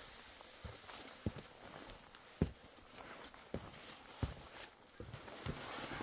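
Glowing embers crackle softly.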